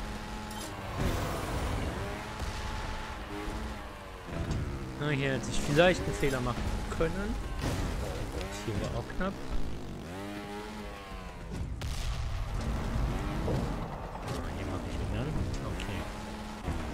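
A motorbike engine revs and whines.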